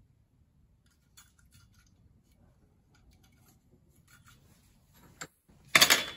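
Metal pieces clink and scrape against each other.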